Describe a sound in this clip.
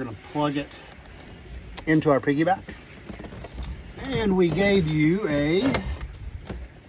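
A middle-aged man speaks close by in a calm, chatty way.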